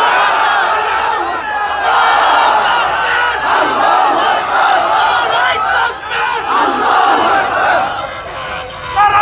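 A man preaches with animation into a microphone, heard through loudspeakers.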